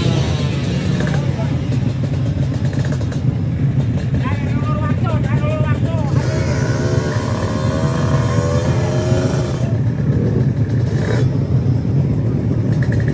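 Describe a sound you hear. Motorcycle engines rumble and idle loudly nearby.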